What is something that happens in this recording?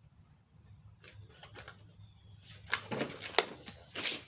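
Metal parts clatter and scrape close by.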